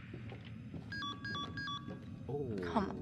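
A phone beeps with short electronic tones.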